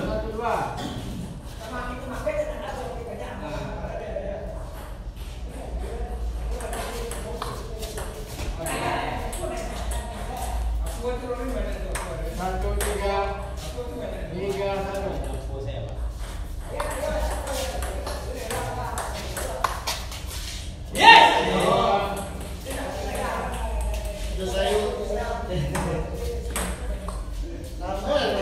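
A table tennis ball clicks back and forth on a table and paddles.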